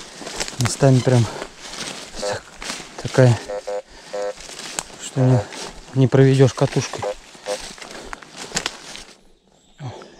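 Footsteps rustle through low leafy plants.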